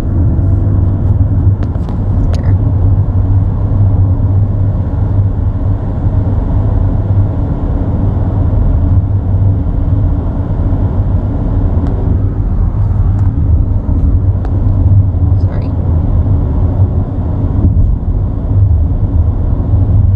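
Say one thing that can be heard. A car drives steadily along a road, its tyres rumbling on the pavement.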